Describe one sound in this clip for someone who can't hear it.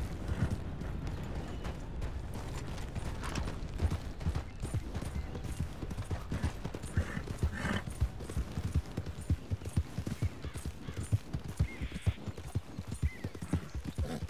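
Horse hooves thud rapidly on grass and dirt.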